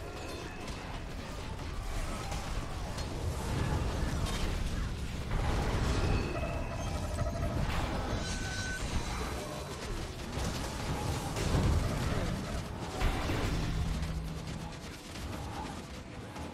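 Fire blasts whoosh and crackle in a fast-paced fight.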